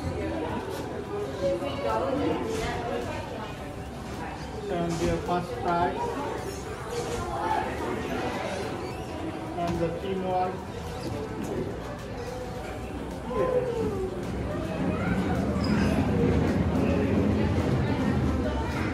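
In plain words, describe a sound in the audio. A young child talks and exclaims nearby.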